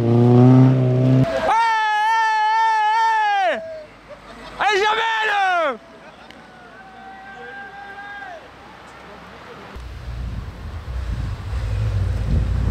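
A car engine revs loudly as the car accelerates past.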